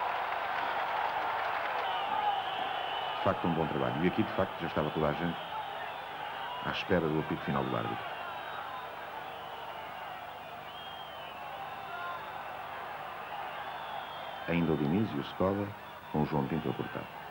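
A large crowd roars steadily in an open stadium.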